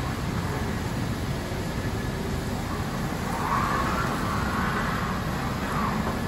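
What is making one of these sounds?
Hard wheels roll over a concrete floor.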